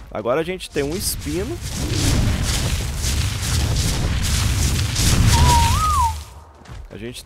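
Heavy footsteps of a large running creature thud rhythmically.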